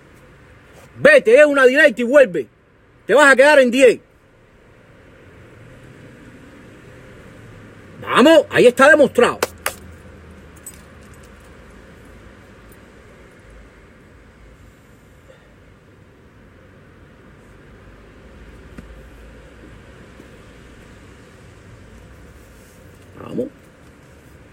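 A middle-aged man speaks in short, animated bursts close by.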